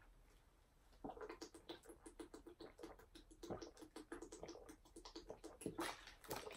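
A young man gulps a drink in quick, steady swallows.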